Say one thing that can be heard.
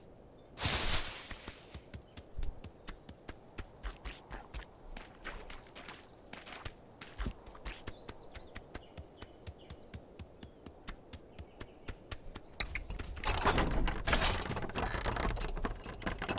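A goose's webbed feet patter quickly on the ground.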